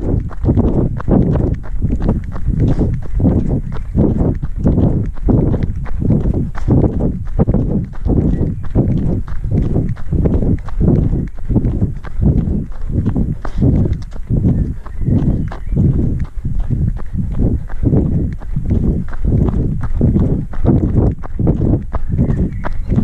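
Footsteps thud in a steady, quick rhythm on a dirt path.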